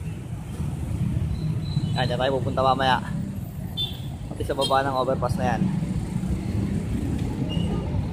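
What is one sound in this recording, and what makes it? Motorbikes buzz past nearby.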